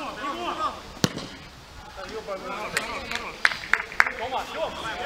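A football is kicked with a sharp thump.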